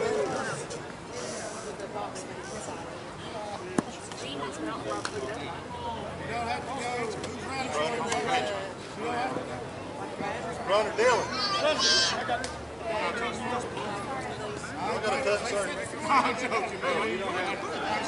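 Men talk and call out across an open field.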